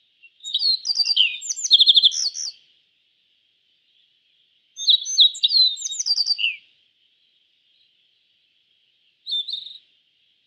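A small bird sings bursts of quick, high chirping song.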